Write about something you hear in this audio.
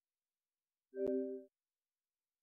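A short electronic tone beeps once.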